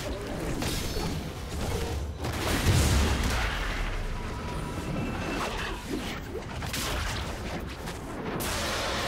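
Video game combat effects whoosh and crackle with fiery blasts.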